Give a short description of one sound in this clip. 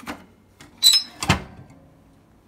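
A toaster oven door clanks shut.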